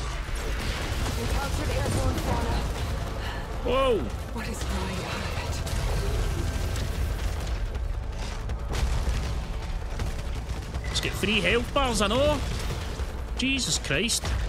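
Energy blasts whoosh and explode.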